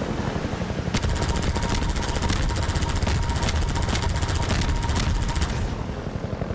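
A mounted gun fires in a fast, steady burst.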